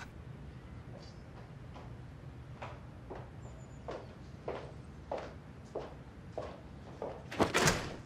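Soft footsteps tap on a hard floor.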